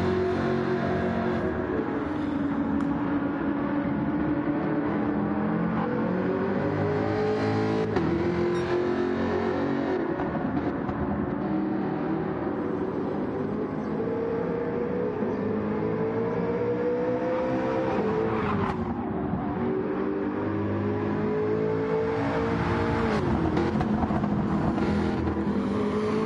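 A racing car engine roars loudly, rising and falling in pitch as it shifts gears.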